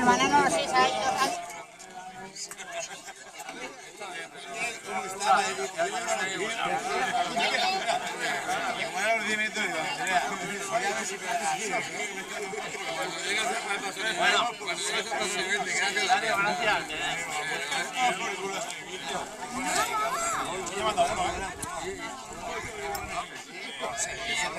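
Several adults talk at once nearby, outdoors.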